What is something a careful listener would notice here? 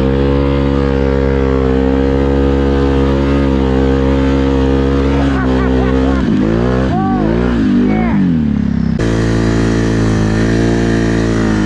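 A small vehicle engine drones loudly and steadily close by.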